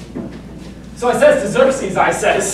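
Another young man answers in a loud, acting voice.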